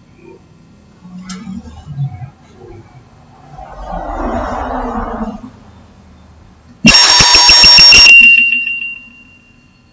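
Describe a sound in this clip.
A handheld microphone rattles and clicks as it is handled.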